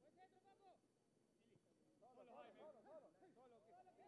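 A man kicks a football with a dull thud.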